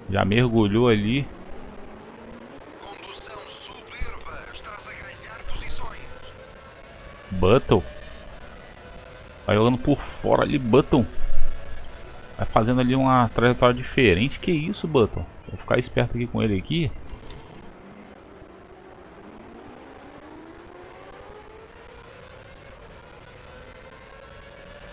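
A racing car engine whines and revs up through the gears.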